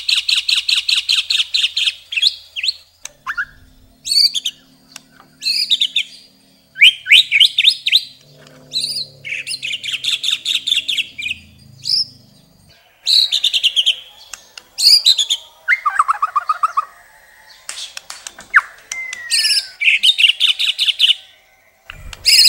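A songbird sings loud, fast, varied phrases of chirps and trills close by.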